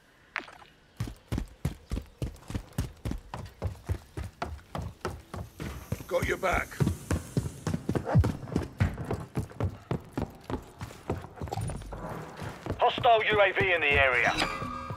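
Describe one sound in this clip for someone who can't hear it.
Footsteps run on hard floors.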